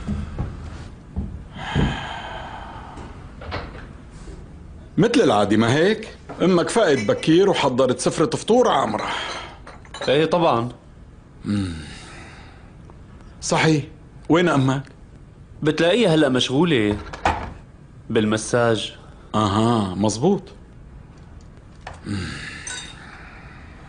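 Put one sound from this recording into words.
A middle-aged man speaks close by in a weary, emotional voice.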